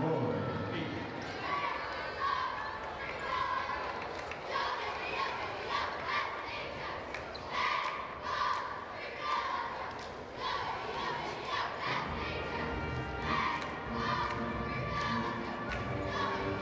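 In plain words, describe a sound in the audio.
Many people clap their hands.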